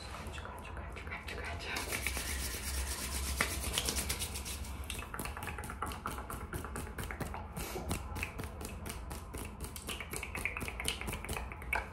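Fingers rub and brush together close to a microphone.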